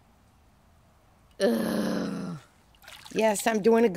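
A pool net swishes through water.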